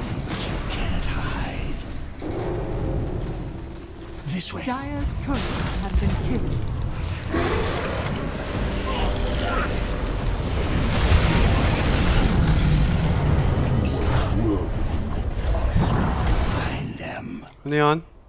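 Video game battle effects clash and boom.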